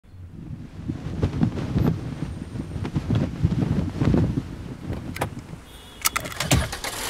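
A flag flaps and snaps in the wind.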